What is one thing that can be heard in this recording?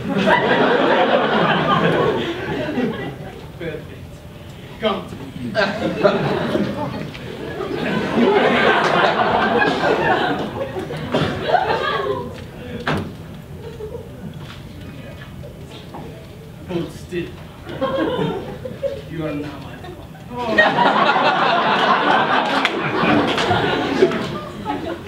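A crowd of people talks and laughs loudly.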